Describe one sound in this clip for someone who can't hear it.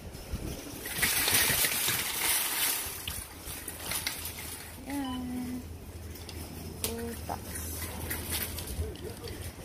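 A shopping cart rattles as it rolls over a tiled floor.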